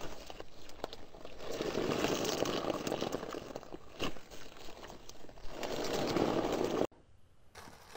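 Squishy beaded slime crackles and pops as fingers squeeze it.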